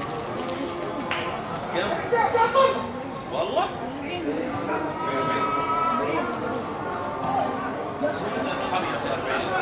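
Young men call out to each other across an echoing, empty stadium.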